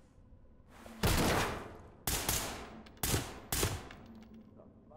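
Loud gunshots fire in quick bursts.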